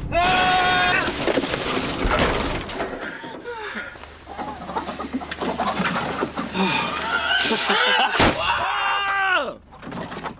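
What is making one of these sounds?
Water sprays hard against a car's windscreen.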